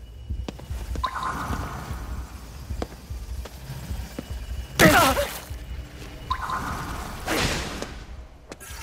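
A magical whoosh bursts out and fades.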